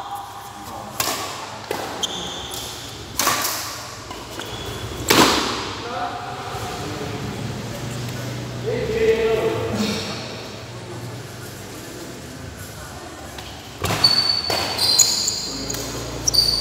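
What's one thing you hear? Rackets smack a shuttlecock back and forth in a hall with some echo.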